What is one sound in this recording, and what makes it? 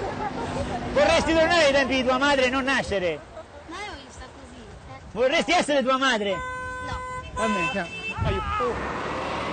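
A woman shouts excitedly close by.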